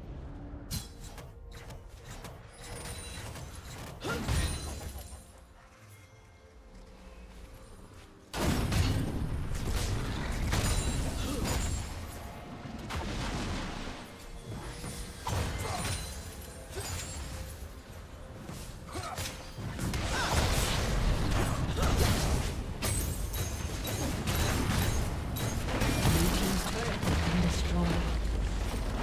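Game combat effects clash, zap and burst in quick succession.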